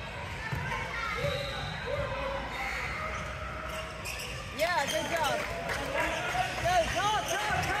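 Young players and spectators talk and call out in a large echoing gym.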